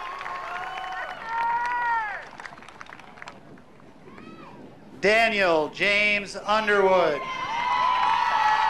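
Young people whoop and cheer loudly nearby.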